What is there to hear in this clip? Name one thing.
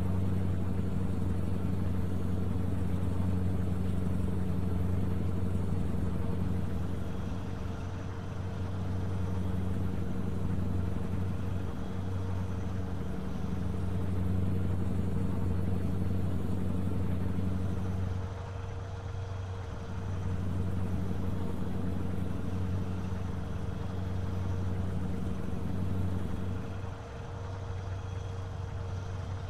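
A truck's diesel engine drones steadily with a low hum.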